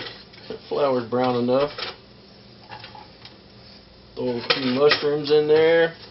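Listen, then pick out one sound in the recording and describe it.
Sliced mushrooms drop into a frying pan.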